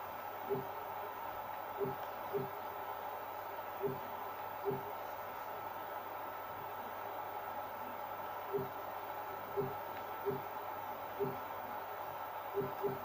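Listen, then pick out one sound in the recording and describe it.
Short menu clicks sound from a television speaker at irregular intervals.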